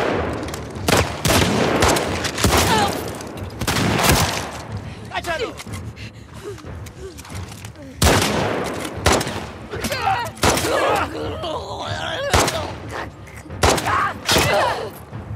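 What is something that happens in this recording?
A pistol fires shots.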